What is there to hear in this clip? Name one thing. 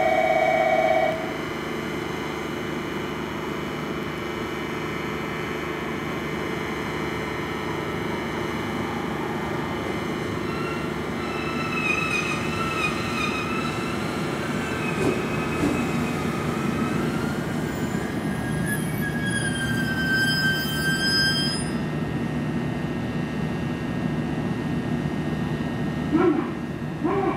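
A train rumbles slowly in along the track.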